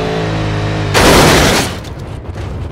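A car crashes with a loud metal smash.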